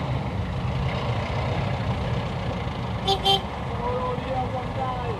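Heavy city traffic rumbles and hums steadily close by.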